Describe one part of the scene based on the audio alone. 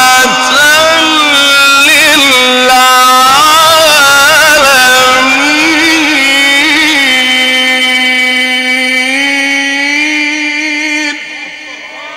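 A man chants in a long, drawn-out melodic voice through a loudspeaker, in a large echoing space.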